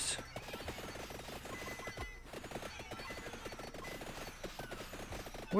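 Rapid game hit sounds patter without pause.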